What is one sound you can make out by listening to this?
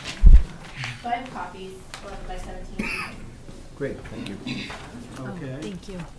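Paper rustles as a woman hands over papers.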